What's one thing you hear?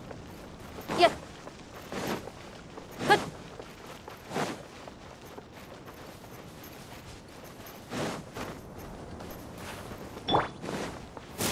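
Quick whooshing bursts sound every few seconds as a game character dashes.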